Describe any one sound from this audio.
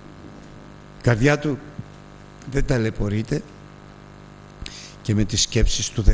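An elderly man speaks with emphasis through a microphone, in short bursts with pauses.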